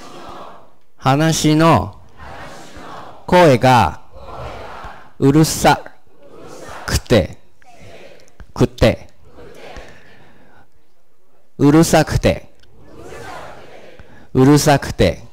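A man speaks into a microphone in a teaching manner, pausing between short phrases.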